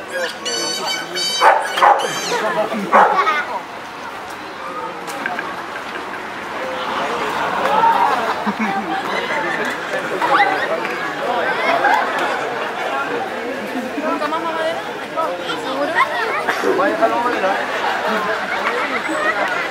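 A crowd of men and women chatters and calls out outdoors.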